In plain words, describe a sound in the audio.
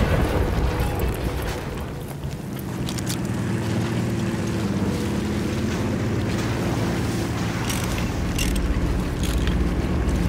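A tank engine rumbles low and steady nearby.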